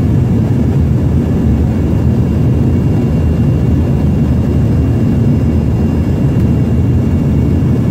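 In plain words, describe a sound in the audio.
A regional jet's twin turbofans roar steadily in the cabin during flight.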